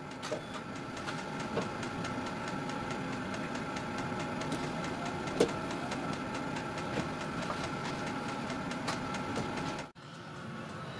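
A rear wiper motor whirs as the wiper sweeps the glass.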